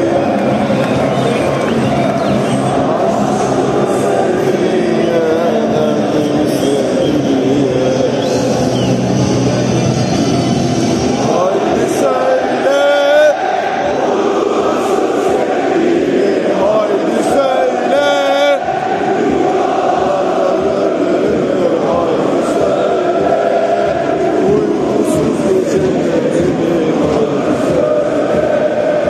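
A huge stadium crowd sings and chants loudly all around, echoing under the roof.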